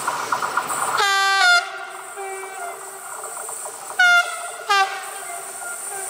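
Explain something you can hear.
A train horn sounds in several loud blasts.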